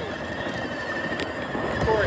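A young boy blows a toy whistle.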